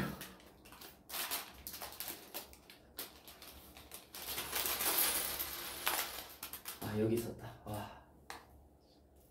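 Plastic wrappers rustle and clatter on a table.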